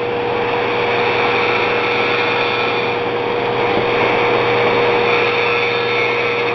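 A hard disk drive spins with a steady hum and whine.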